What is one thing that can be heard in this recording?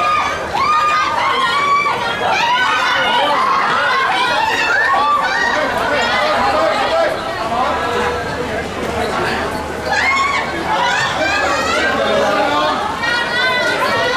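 A crowd of young women screams and shouts excitedly close by.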